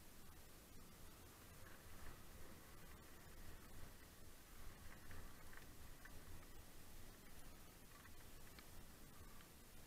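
Wind rumbles past a moving bike.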